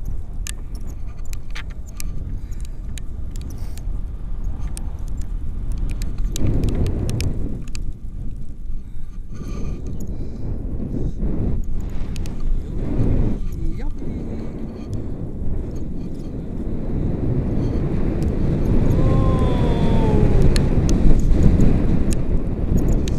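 Wind roars loudly against a microphone outdoors.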